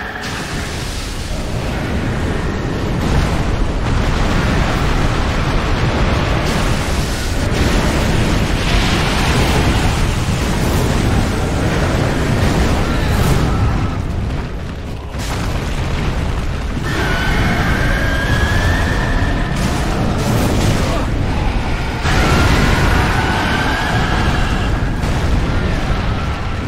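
A huge creature roars and stomps heavily.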